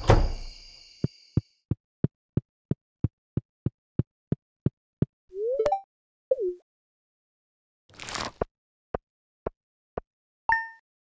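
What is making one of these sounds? Quick light footsteps tap on dirt.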